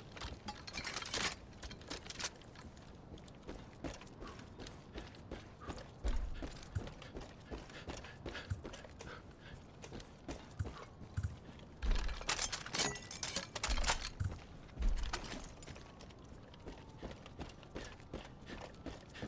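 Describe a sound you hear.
Weapon parts click and clack as guns are handled and switched.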